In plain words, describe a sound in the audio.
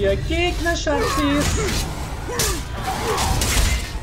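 A sword strikes with clashing blows.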